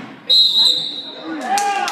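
A whistle blows sharply in a large echoing gym.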